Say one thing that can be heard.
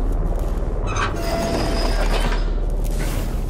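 A metal valve wheel squeaks as it turns.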